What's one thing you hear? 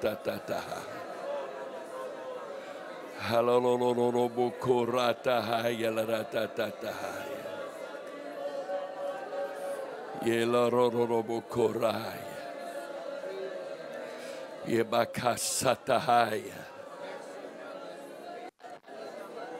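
An elderly man speaks loudly and fervently through a microphone.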